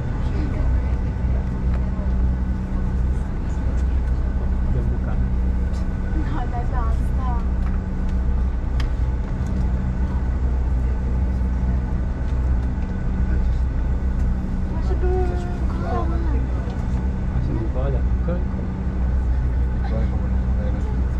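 A jet engine hums steadily inside an aircraft cabin.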